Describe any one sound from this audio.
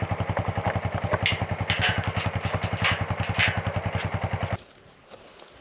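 A metal gate rattles and clanks as it is swung.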